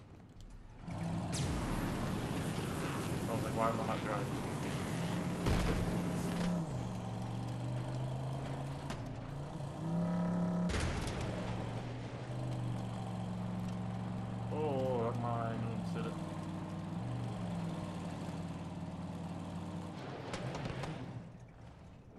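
A buggy's engine roars as it drives over rough ground.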